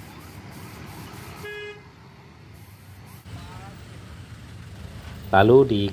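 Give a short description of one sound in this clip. Motorcycle engines hum nearby in traffic.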